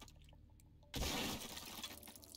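Rock shatters and pieces scatter.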